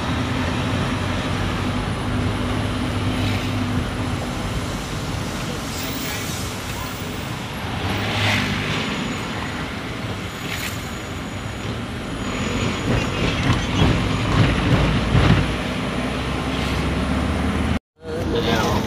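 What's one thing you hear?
A car engine hums steadily from inside the vehicle as it drives along a road.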